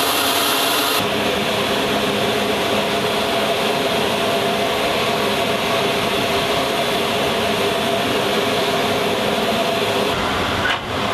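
A heavy cargo loader's engine rumbles steadily nearby.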